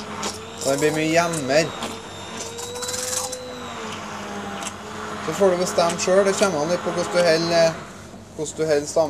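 A hand blender whirs in a pan of liquid.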